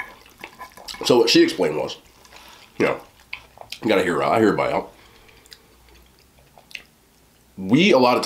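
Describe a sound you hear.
A man talks with his mouth full, close to a microphone.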